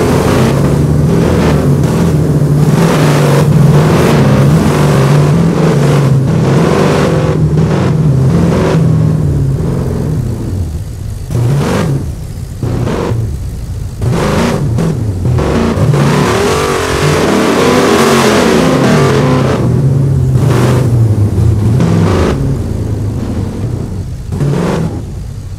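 A truck engine roars and revs steadily.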